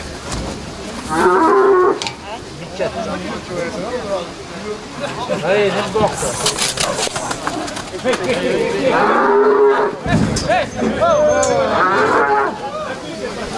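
Young men call out loudly nearby.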